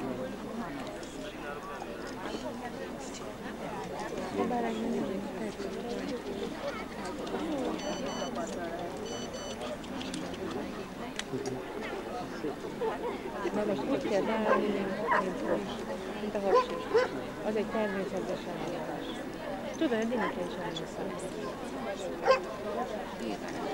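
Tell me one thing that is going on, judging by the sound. Men and women chatter at a distance outdoors.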